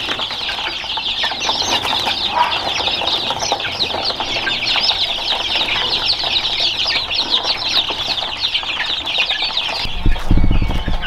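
Chicks peep shrilly and constantly.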